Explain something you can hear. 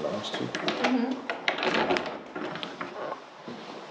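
A door handle clicks and a door swings open.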